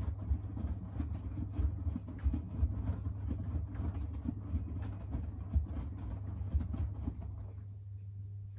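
Wet laundry thumps and sloshes inside a turning washing machine drum.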